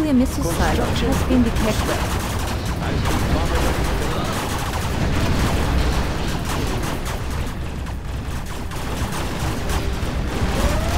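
Explosions boom and crackle in a battle.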